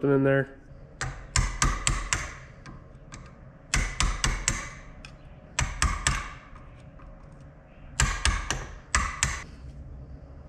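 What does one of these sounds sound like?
A hammer strikes a metal punch in a vise with sharp ringing blows.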